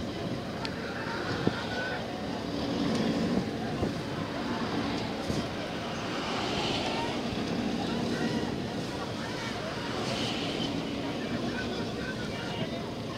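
Oar blades splash and pull through water in a rowing stroke rhythm.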